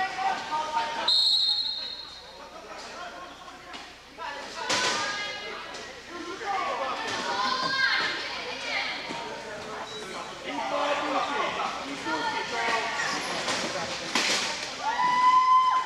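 Wheelchairs clash together with loud metal bangs.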